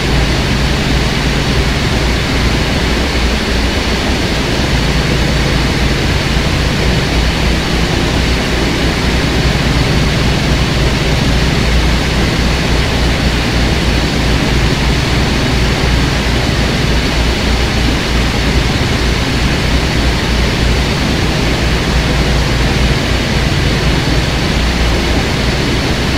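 A locomotive engine rumbles and hums steadily.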